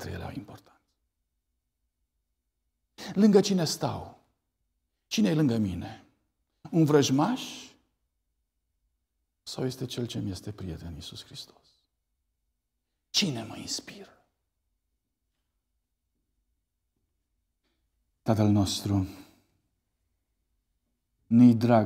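A middle-aged man speaks calmly through a microphone in short phrases with long pauses.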